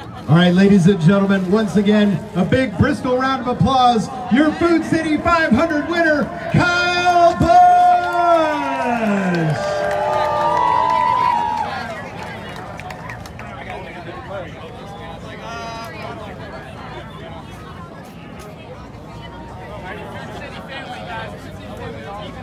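A crowd of men and women chatters and calls out nearby, outdoors.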